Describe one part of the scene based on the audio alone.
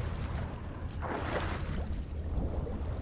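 Water rushes and splashes as a swimmer dives under.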